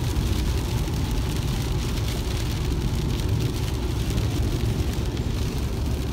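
Windshield wipers swish back and forth.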